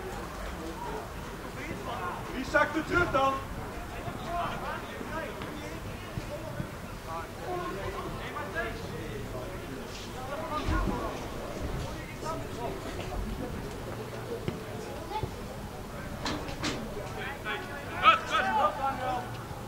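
Young players shout to each other outdoors.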